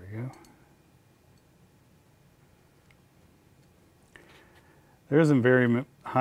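Small metal parts click softly against each other.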